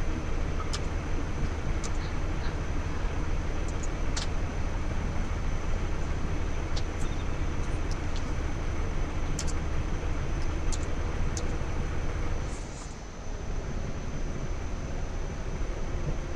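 An armoured vehicle's engine idles with a steady low rumble.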